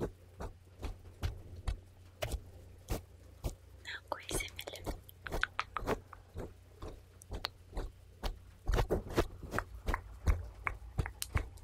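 A fluffy brush brushes against a microphone, making soft rustles.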